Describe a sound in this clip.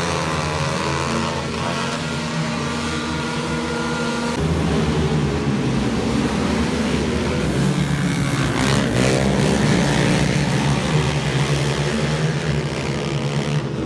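Many quad bike engines roar and whine loudly as they race around a track.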